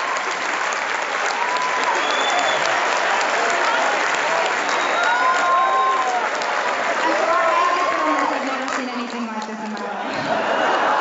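A large crowd cheers and whoops in an echoing hall.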